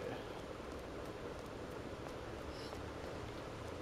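Footsteps tread on a hard concrete floor.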